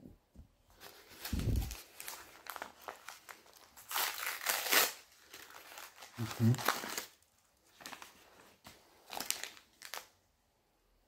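A wrapper crinkles and rustles in someone's hands.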